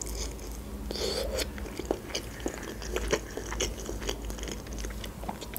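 A young woman chews crunchy food close to a microphone, with wet crackling bites.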